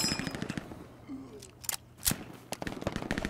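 A rifle is reloaded with metallic clicks.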